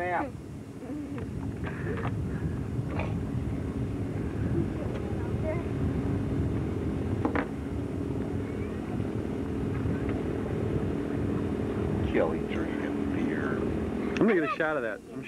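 Water sloshes and splashes around a child wading.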